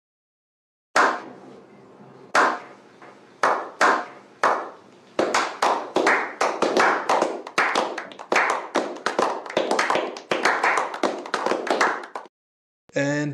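A group of men clap their hands slowly, then faster and faster, with a short ringing echo after each clap.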